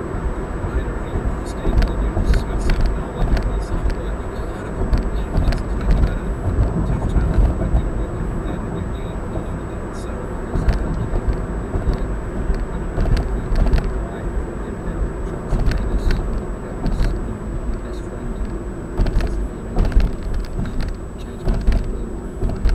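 Tyres roll steadily on the road.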